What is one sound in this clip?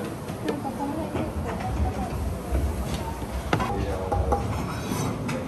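Ceramic plates clink as they are set down on a counter.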